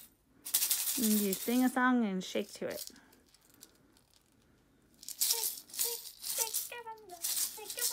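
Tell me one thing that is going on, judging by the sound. A child speaks with animation close by.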